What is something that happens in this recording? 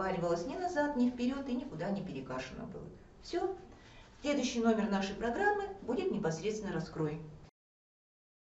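An elderly woman speaks calmly, close by.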